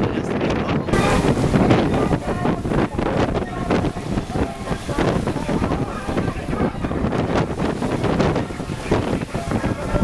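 Water rushes and splashes along a boat's hull.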